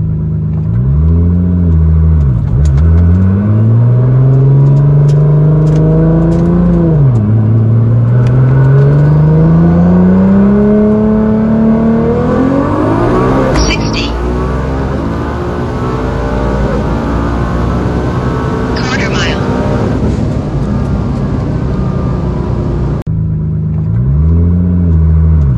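A powerful car engine roars loudly, climbing in pitch through several gear changes as it speeds up.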